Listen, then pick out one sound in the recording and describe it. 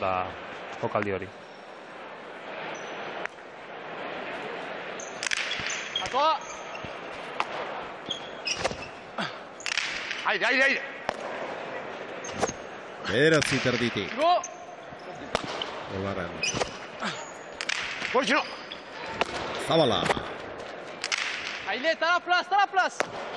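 A ball smacks hard against a wall and floor, echoing through a large hall.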